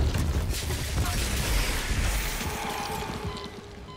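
Heavy footsteps crunch on stone.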